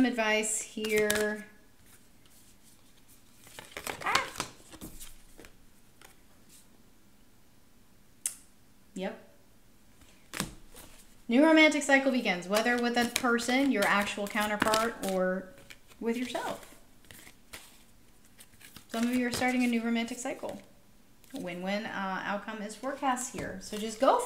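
A woman speaks calmly and closely into a microphone, with pauses.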